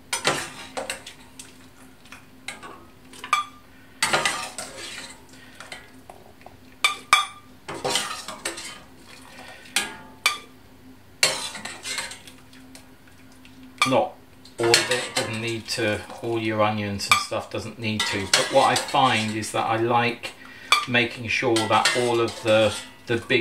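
Liquid drips and splashes into a pot.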